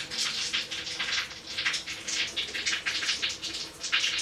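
Newborn kittens suckle noisily at their mother.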